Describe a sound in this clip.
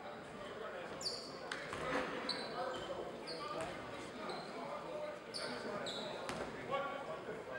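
Sneakers squeak sharply on a hard court.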